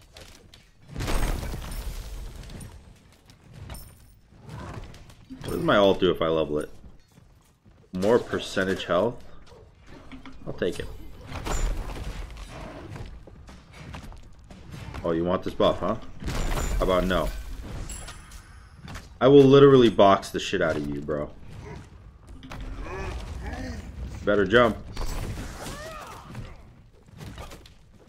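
Game effects boom and crash.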